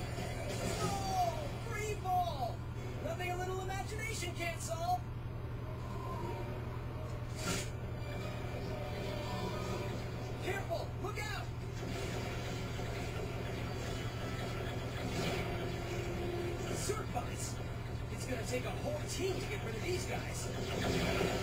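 Magical blasts burst and sparkle from a television loudspeaker.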